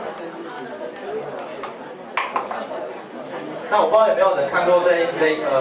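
A young man speaks calmly through a microphone and loudspeakers in an echoing room.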